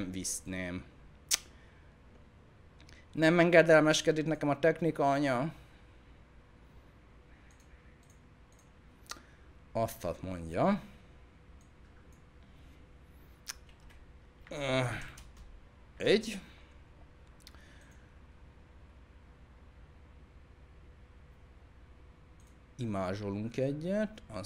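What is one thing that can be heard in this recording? A man talks into a close microphone in short bursts, calmly.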